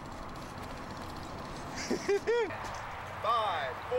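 A man shouts excitedly outdoors.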